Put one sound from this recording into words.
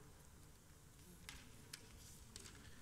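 Paper pages rustle as a page is turned.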